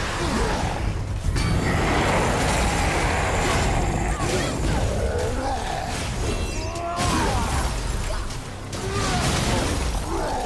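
Heavy blows strike and crack ice.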